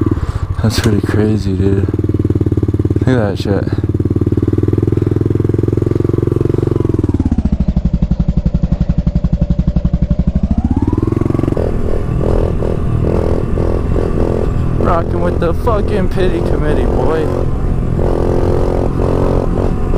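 A small dirt bike engine buzzes loudly up close, revving up and down.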